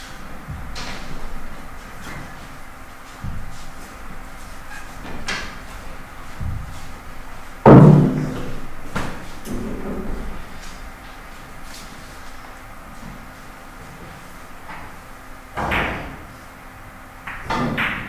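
Billiard balls clack together sharply, now and then.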